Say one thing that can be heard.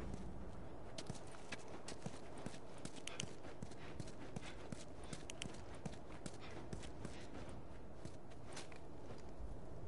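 Footsteps crunch on hard ground.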